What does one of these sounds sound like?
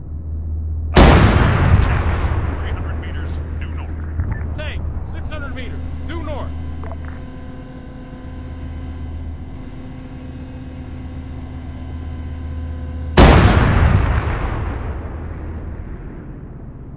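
Large explosions boom and rumble away.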